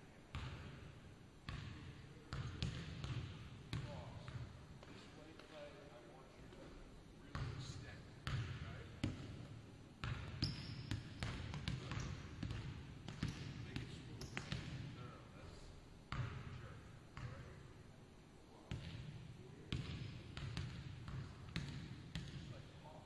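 A basketball bounces on a wooden floor, echoing through a large empty hall.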